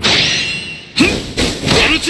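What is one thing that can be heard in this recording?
A fiery blast whooshes.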